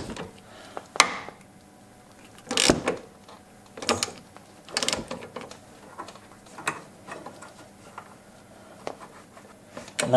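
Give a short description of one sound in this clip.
A metal puller clicks and clanks as a wrench turns it.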